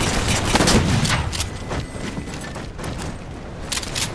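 A melee blow lands with a heavy thud.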